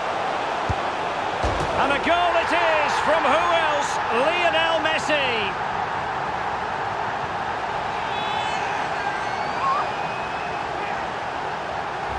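A large crowd roars and cheers in a stadium.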